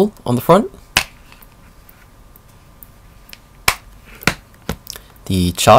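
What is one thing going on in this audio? Plastic parts click and tap as they are handled.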